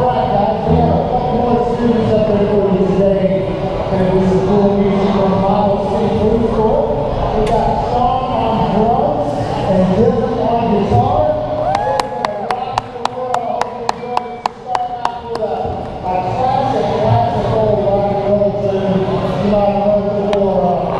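A rock band plays loudly in a large echoing hall.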